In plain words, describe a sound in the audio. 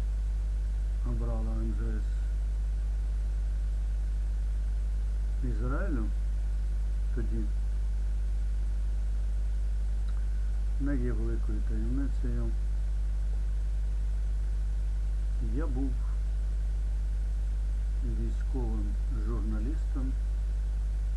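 An elderly man speaks calmly in short phrases, close to a microphone, with long pauses.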